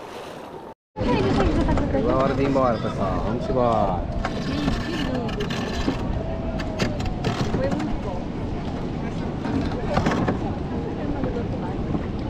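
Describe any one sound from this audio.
A crowd of men and women talk and call out across the water nearby.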